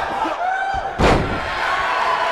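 A body slams hard onto a wrestling mat with a loud thud.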